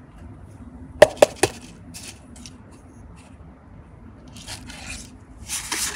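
A paper cup taps against a hard surface.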